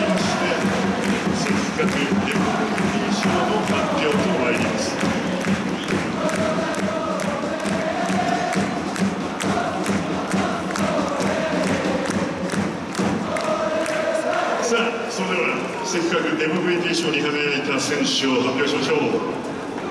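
A large stadium crowd claps in rhythm.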